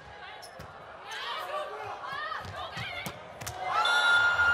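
A volleyball is struck hard with a sharp slap.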